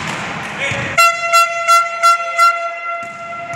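A referee's whistle blows in short repeated blasts, echoing in a large hall.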